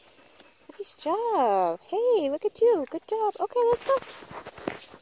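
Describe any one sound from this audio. A dog whines and yowls in a high, wavering voice close by.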